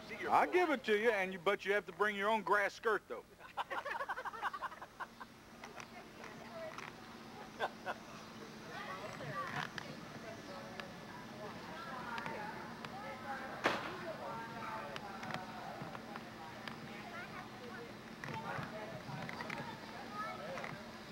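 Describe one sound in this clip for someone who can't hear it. Several men and women chat and laugh nearby outdoors.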